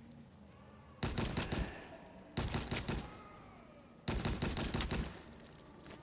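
Blades clash and strike in a short fight.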